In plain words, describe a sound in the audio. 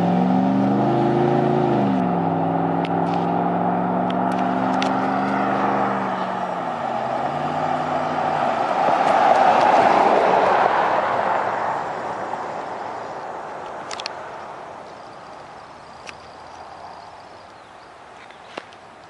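A car approaches along a road with a humming engine, roars past close by and fades away.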